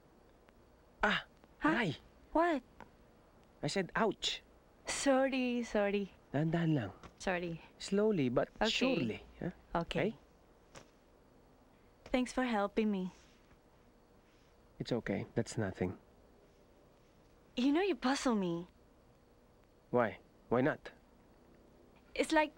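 A young woman speaks softly and calmly close by.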